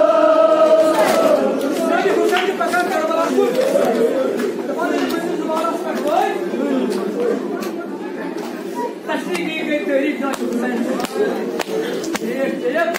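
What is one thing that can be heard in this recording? A crowd of men murmur and talk among themselves in an echoing hall.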